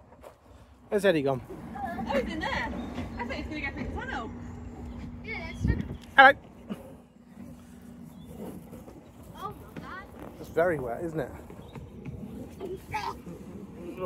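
A young child talks and calls out excitedly nearby.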